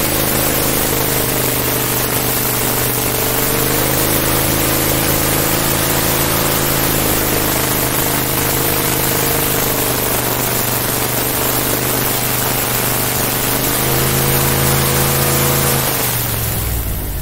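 Water sprays and churns behind a speeding boat.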